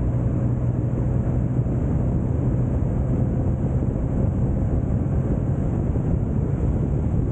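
Wind rushes past loudly and roughly.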